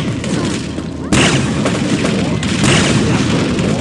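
A weapon fires blasts in a game.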